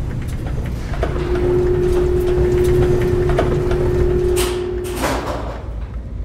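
A lift cage descends with a steady mechanical hum and stops with a clank.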